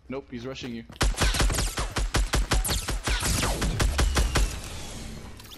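Rapid gunfire bursts out in quick shots.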